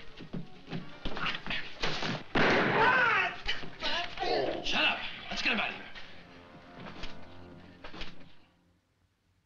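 Blows and scuffling thud as men fight at close range.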